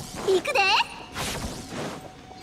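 A magic strike whooshes and zaps.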